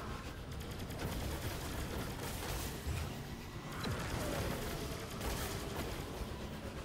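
A jet-powered vehicle roars and whooshes along steadily.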